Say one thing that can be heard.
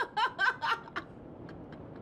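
A middle-aged woman laughs loudly close by.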